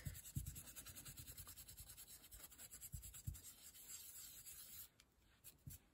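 A brush scrubs softly against paper.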